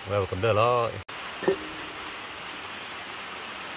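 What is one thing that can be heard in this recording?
Soup splashes softly into a bowl.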